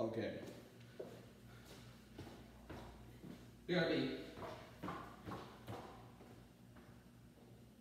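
Footsteps tap on a hard floor as a young man walks away.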